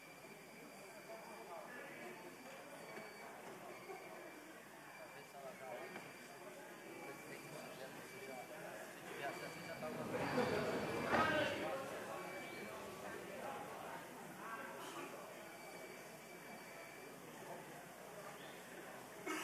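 Many men and women chatter in a large echoing hall.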